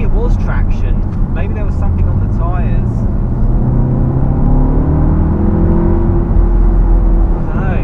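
A car engine hums and rises in pitch as the car speeds up.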